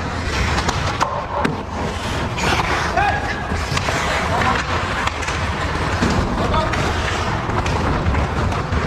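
Hockey sticks clack against a puck and each other on ice.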